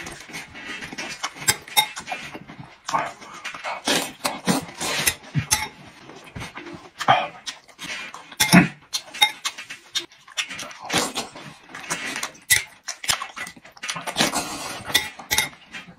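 A metal spoon scrapes and clinks against a bowl.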